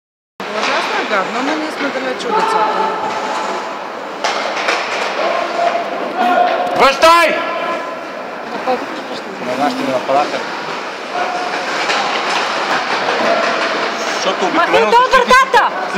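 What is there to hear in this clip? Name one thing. Young players shout and call to each other in a large echoing hall.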